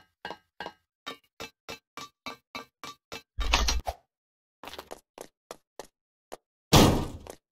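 Game footsteps patter in quick succession in a video game.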